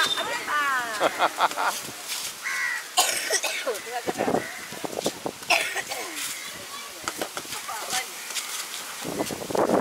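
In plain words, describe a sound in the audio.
Young children chatter and squeal playfully nearby.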